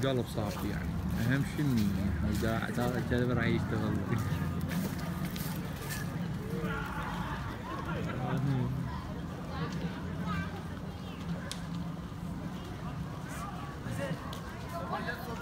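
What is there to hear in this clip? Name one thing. A crowd of people chatter outdoors at a distance.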